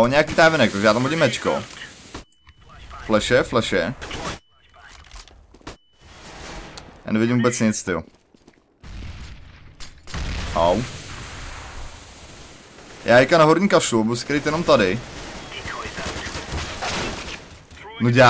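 A smoke grenade hisses as it spreads smoke.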